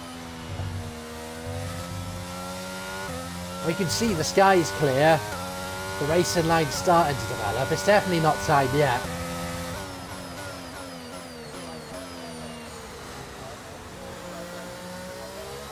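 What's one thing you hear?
A racing car engine whines steadily, shifting up through the gears.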